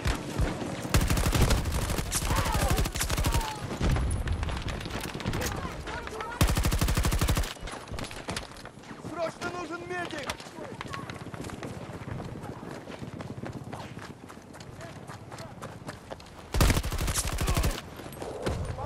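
Automatic gunfire fires in rapid, loud bursts.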